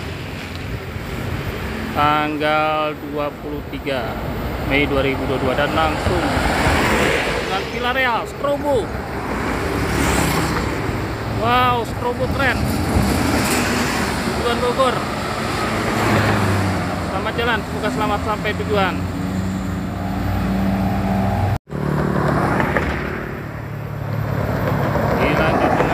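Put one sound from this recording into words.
Traffic drives past close by.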